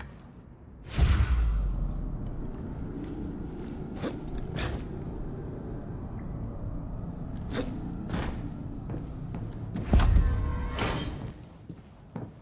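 A body slides and rumbles down a long metal pipe.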